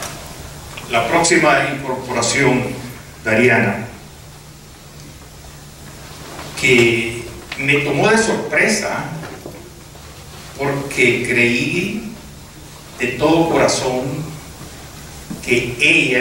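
A man speaks into a microphone over a loudspeaker in an echoing hall, in short bursts with pauses.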